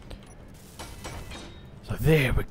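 An electric welder hisses and crackles.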